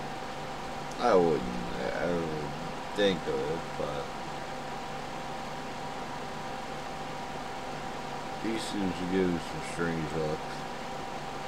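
A middle-aged man talks calmly and close to a microphone, in short bursts.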